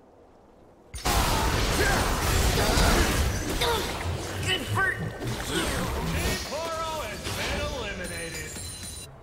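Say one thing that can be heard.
Magic blasts and weapon hits crash and whoosh in a fast game battle.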